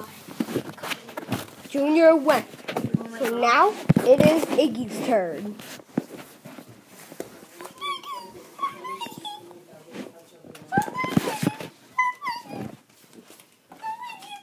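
Plastic toys clatter and knock on a wooden surface.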